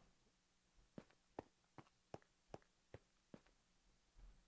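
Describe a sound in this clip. Short clicking knocks repeat quickly as blocks break in a game.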